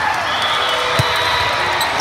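A volleyball is struck with a loud smack.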